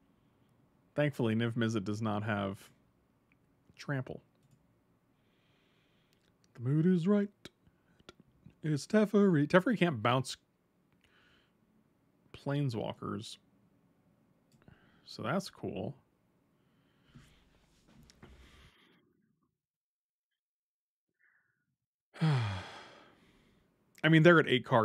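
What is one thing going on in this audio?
A middle-aged man talks with animation into a close microphone, in bursts with pauses.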